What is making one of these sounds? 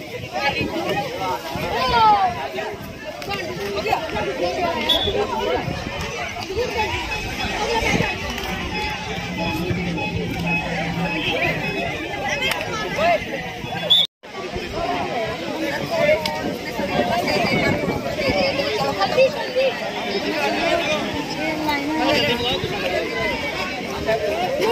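A crowd of boys shouts and cheers outdoors.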